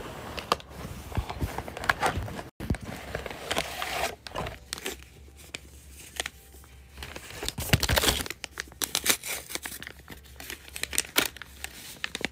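Clothing rustles against a microphone close by.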